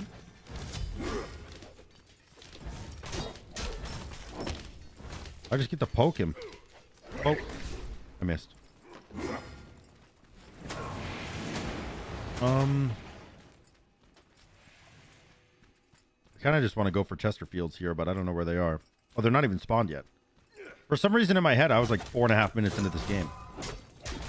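Game sound effects of fighting and spells play.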